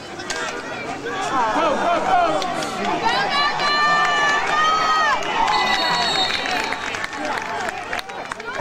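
Spectators cheer loudly as a play finishes.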